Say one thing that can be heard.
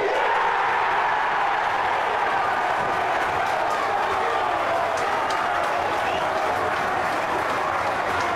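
A stadium crowd cheers and roars outdoors.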